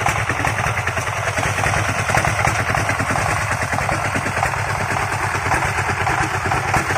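A single-cylinder tractor engine chugs loudly and steadily close by.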